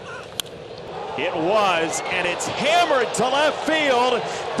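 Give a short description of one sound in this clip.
A large crowd cheers loudly and excitedly.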